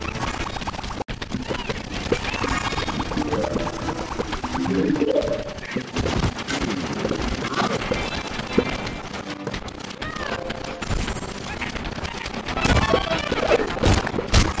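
Fiery blasts whoosh and explode.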